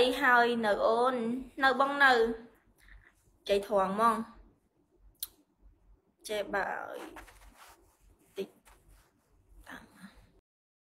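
A young woman sings softly close to a phone microphone.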